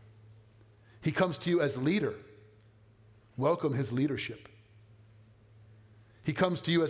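A man speaks calmly into a microphone in a large room, pausing between phrases.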